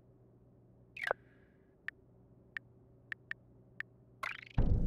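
Short game menu clicks tick one after another.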